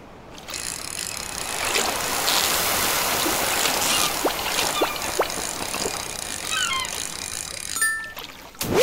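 A fishing reel clicks and whirs.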